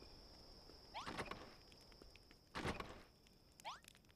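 A door thuds open.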